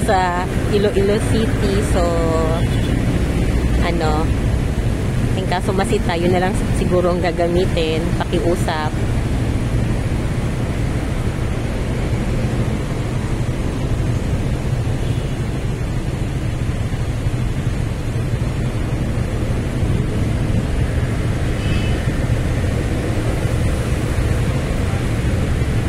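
Traffic rumbles past at a busy road.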